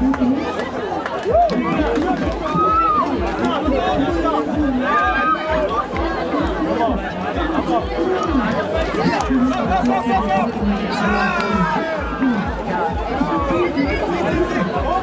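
A crowd of young men and women chatter and shout outdoors close by.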